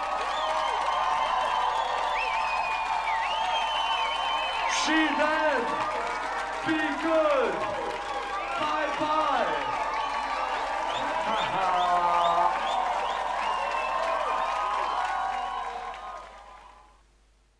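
A crowd cheers and screams.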